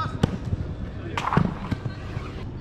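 A ball slams into a goal net.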